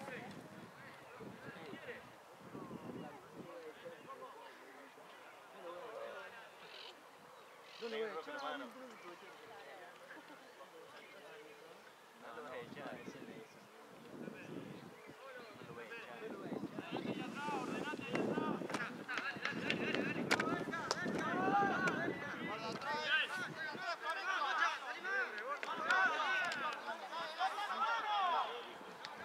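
Young men shout and call to each other from a distance on an open field.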